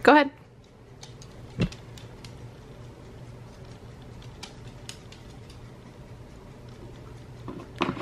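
A small dog sniffs and crunches on treats close by.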